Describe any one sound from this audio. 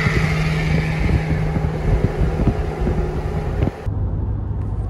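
Traffic rushes past loudly on a highway.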